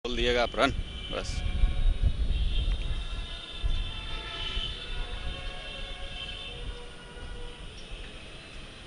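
Wind buffets the microphone with a low rumble.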